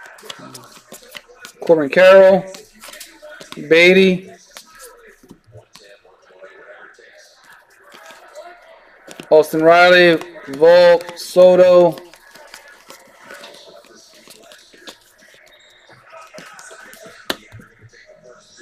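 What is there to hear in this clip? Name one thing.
Trading cards slide and flick against each other in hands.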